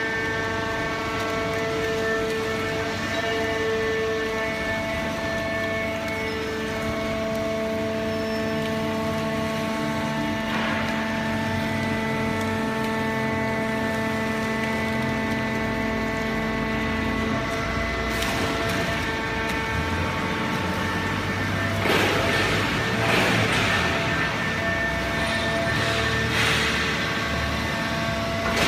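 A large baling machine hums steadily with a droning motor.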